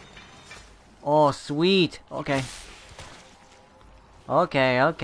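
A young man speaks loudly and with animation into a nearby microphone.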